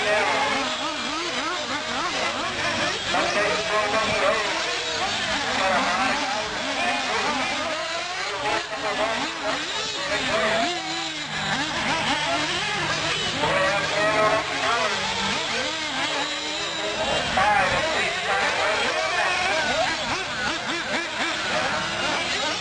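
Small model race cars whine as they speed by.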